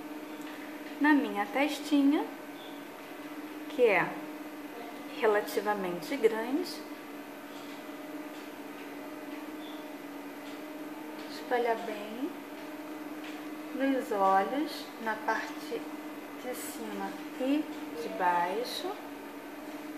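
A woman speaks calmly and close to a microphone, in short phrases.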